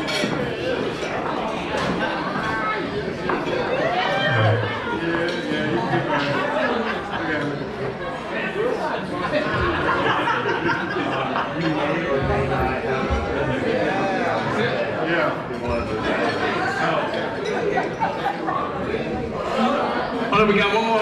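A group of adult men and women chat and laugh close by in a large room.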